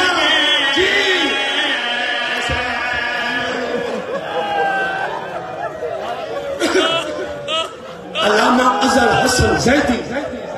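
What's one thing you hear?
A man speaks passionately into a microphone through a loud sound system, his voice ringing in a large space.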